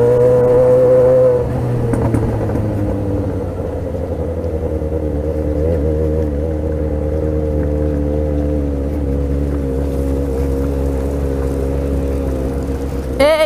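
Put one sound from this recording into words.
A motorcycle engine hums steadily close by, easing off after a moment.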